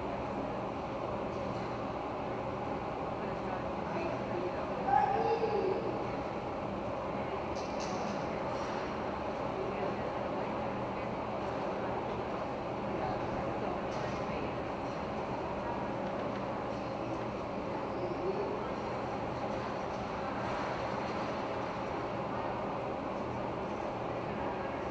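Ice skates scrape and glide across the ice in a large echoing rink.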